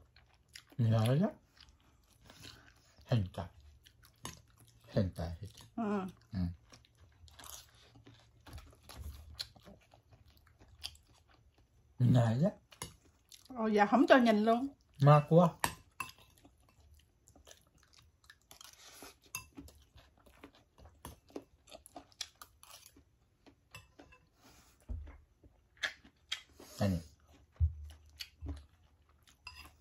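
Chopsticks and a spoon clink against plates and bowls.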